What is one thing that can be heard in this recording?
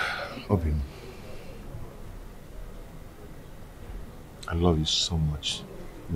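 A man speaks softly and tenderly, close by.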